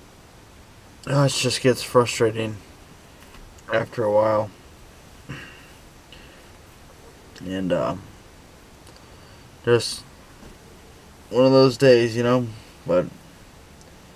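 A young man speaks in short, strained bursts close by.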